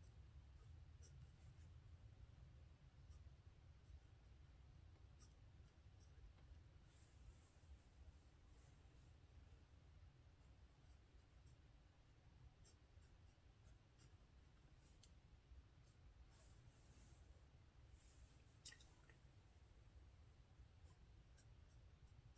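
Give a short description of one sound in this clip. A pencil scratches and taps on paper as characters are written.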